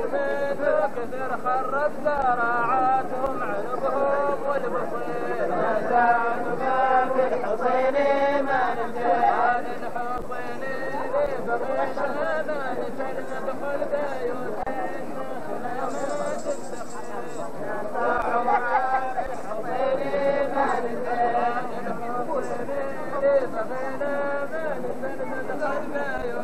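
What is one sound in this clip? A crowd of men sing a chant together, outdoors.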